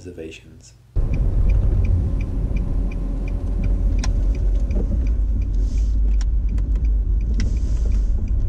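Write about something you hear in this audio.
A car engine hums and tyres rumble on the road as the car drives.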